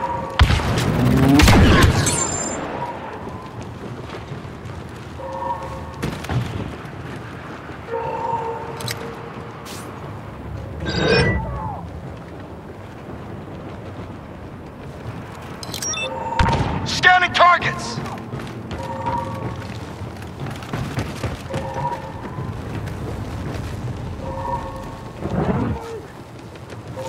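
Laser blasters fire in short zapping bursts.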